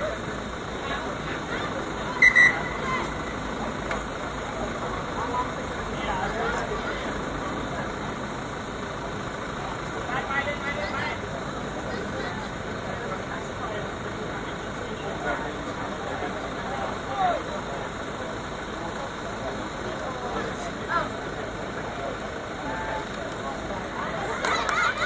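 Young women players call out to each other outdoors.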